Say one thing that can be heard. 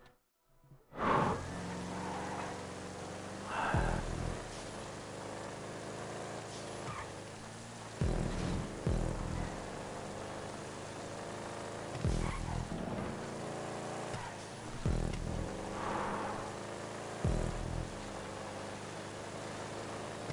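A car engine revs hard and steadily.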